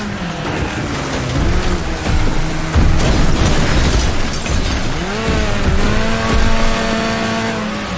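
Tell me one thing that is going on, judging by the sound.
Cars crash and scrape together with loud bangs and grinding.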